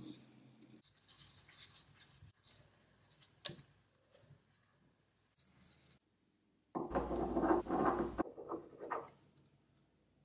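Metal threads scrape softly as two parts are screwed together.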